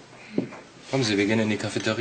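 A young woman answers calmly nearby.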